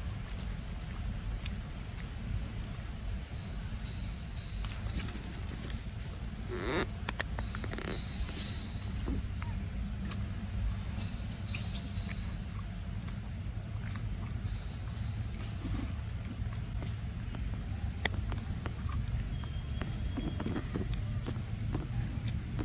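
A monkey makes soft grunting calls close by.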